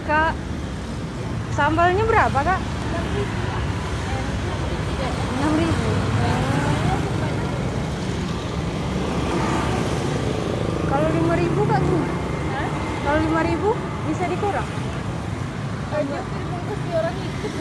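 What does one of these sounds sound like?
Motorbike engines hum and buzz as they ride past close by.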